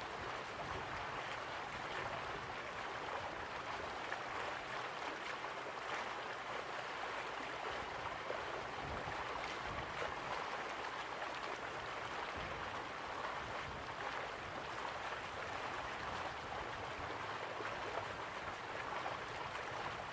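Water from a waterfall rushes steadily in the distance.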